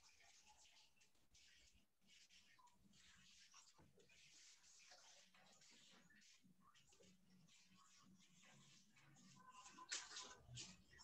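Fingers rub and smear paint across paper with soft scratchy swishes.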